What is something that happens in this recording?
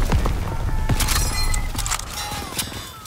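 Metal clicks as a rifle is reloaded.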